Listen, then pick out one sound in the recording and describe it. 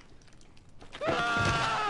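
A woman cries out loudly close by.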